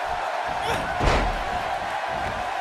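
A body slams down onto a wrestling ring mat with a thud.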